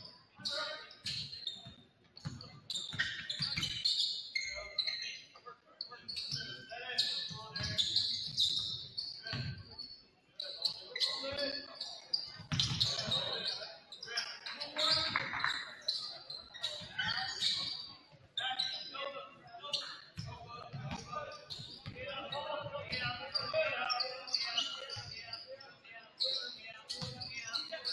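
Young players call out and shout to each other in a large echoing gym.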